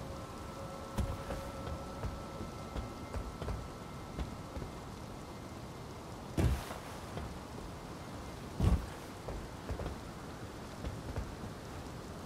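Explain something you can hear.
Footsteps tap on stone roof tiles.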